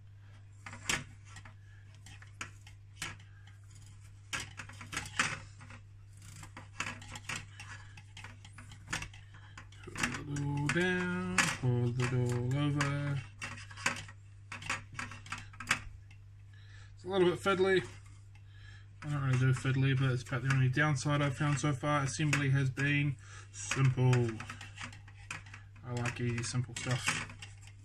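Plastic mesh netting crinkles and rustles as hands handle it.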